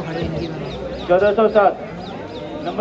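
A man shouts loudly.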